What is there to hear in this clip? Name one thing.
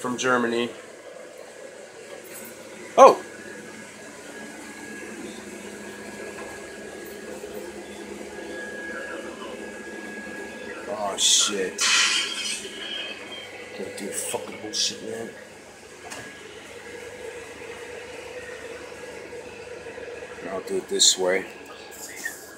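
A man speaks briefly nearby.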